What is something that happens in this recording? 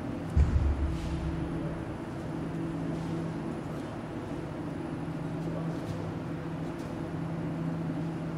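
A refrigeration machine hums steadily.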